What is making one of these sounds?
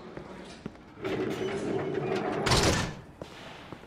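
A heavy metal gate slides and clangs shut.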